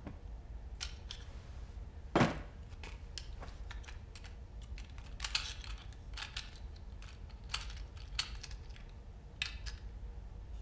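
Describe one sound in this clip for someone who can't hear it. Small metal parts click and scrape as a lock is handled.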